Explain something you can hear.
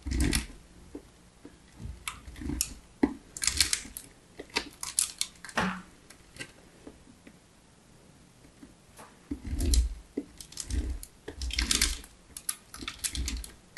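Fingernails scrape and tap across a hard textured plastic surface in crisp, uneven bursts.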